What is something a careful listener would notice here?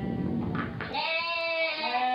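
Lambs bleat close by.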